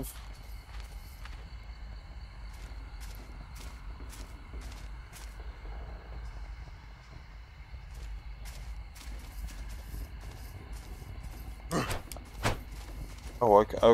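Footsteps crunch and rustle through dry grass and brush.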